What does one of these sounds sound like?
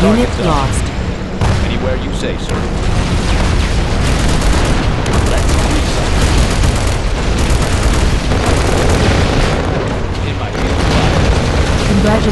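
Explosions boom and rumble one after another.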